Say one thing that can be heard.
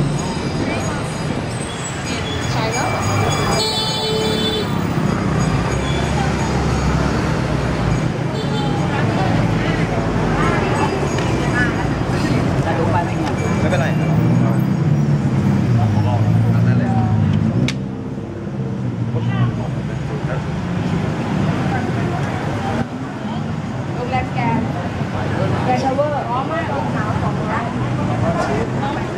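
A crowd chatters busily outdoors on a street.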